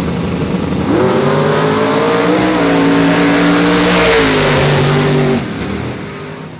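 Two race cars roar off at full throttle and speed away.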